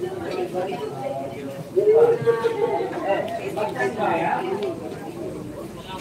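A crowd of children and adults chatters.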